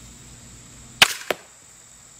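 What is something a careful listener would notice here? A crossbow fires with a sharp snap.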